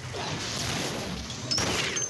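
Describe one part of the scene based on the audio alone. An electric charge crackles and buzzes.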